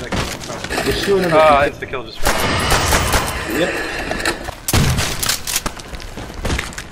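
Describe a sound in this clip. Zombies snarl and groan close by.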